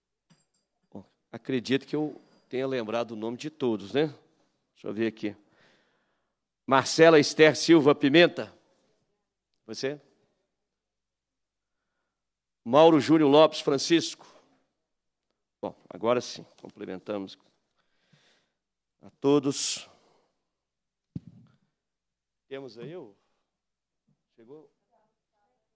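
A man speaks calmly through a microphone in a large hall, with pauses.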